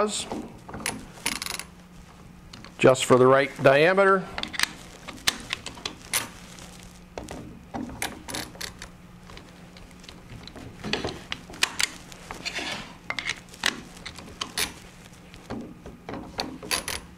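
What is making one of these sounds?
A wrench clicks and rattles against a metal chuck.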